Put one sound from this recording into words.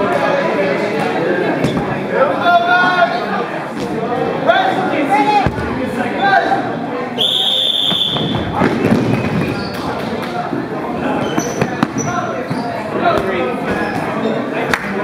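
A crowd of young people shouts and chatters in a large echoing hall.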